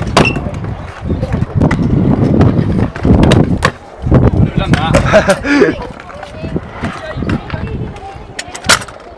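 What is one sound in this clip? Scooter wheels rumble over concrete.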